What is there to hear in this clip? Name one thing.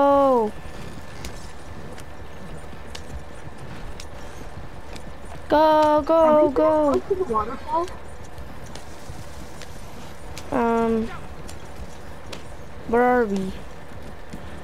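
Horse hooves clop steadily on the ground.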